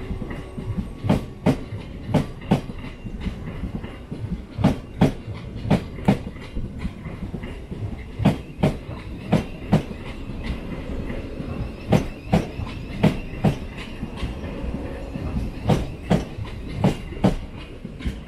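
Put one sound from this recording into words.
A train's wheels clatter rhythmically over rail joints as it rolls along close by.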